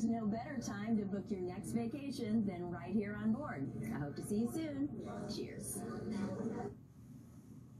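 A woman speaks with animation to the listener.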